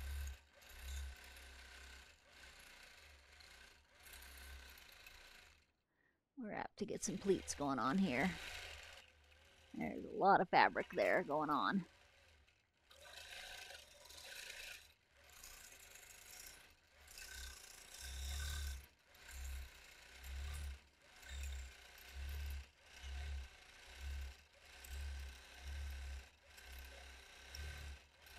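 A sewing machine hums and stitches in short repeated bursts.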